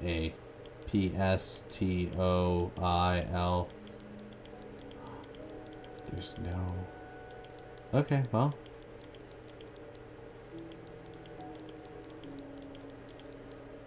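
Small metal lock dials click as they turn.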